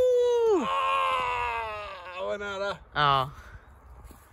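A man shouts loudly and playfully, with his voice rising and falling, close by.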